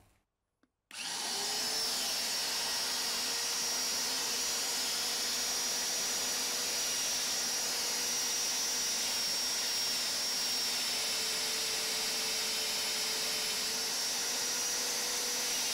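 A drill bit cuts into steel with a grinding hiss.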